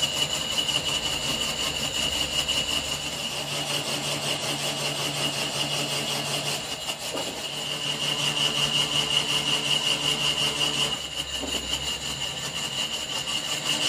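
A metal lathe hums steadily as it spins.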